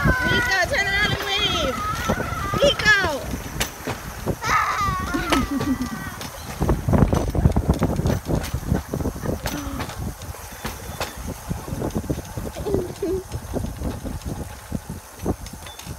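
Metal wheels clatter and rattle steadily along a rail track.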